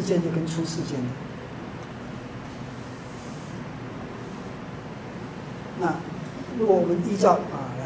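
A man speaks calmly, close by, in short phrases.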